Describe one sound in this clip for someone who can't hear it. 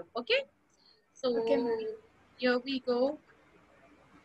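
A young woman speaks through an online call in short bursts.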